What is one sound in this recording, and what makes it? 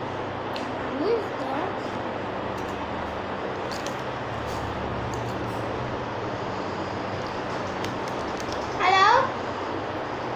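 A young girl makes short vocal sounds close by.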